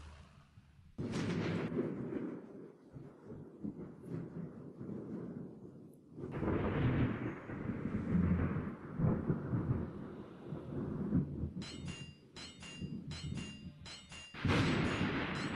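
Ship guns fire in loud booming salvos.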